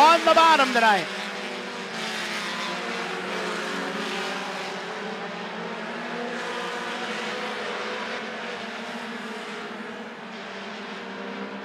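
Race car engines roar steadily as the cars speed around a track.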